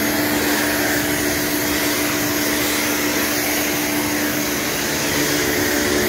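A pressure washer sprays water hard against tiles with a loud, steady hiss.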